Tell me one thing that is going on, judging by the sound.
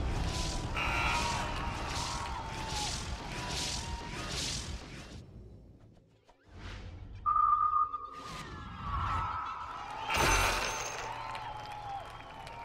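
Game battle effects clash and whoosh in rhythmic bursts.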